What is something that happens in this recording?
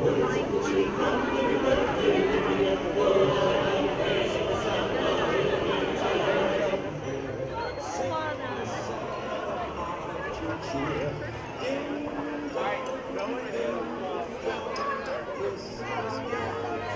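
A crowd of adults and children chatters outdoors.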